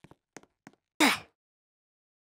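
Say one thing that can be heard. Something smashes with a loud crash.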